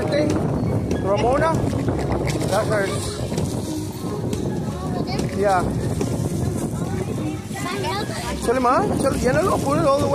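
Plastic wrappers and dry leaves rustle as children grab things from the ground.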